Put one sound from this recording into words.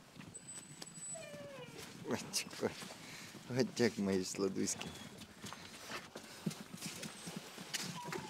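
Puppies whine and yelp.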